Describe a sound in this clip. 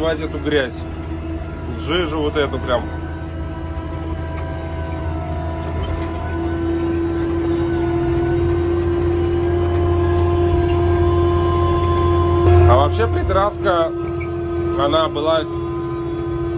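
A motor grader's diesel engine drones under load, heard from inside the cab.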